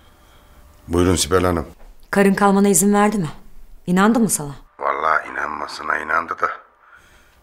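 A woman talks calmly into a phone.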